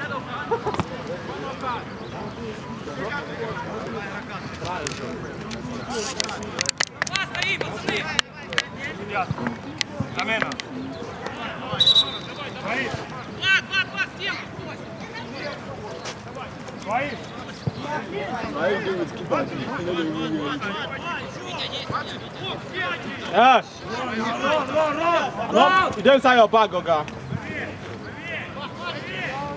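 Men shout and call to each other across an open field.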